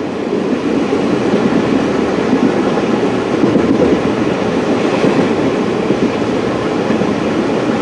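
Wind rushes past the vehicle's window.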